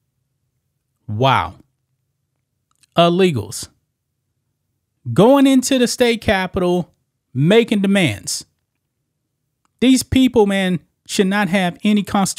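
A man talks calmly and close into a microphone.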